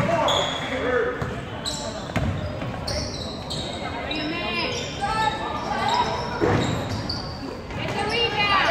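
Spectators murmur and call out in the stands.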